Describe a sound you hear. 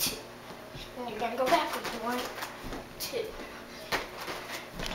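Feet thump and land on a floor.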